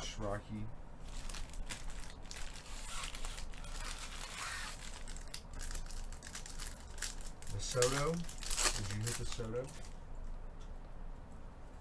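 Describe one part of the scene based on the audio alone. Foil wrappers crinkle and rustle as packs are torn open.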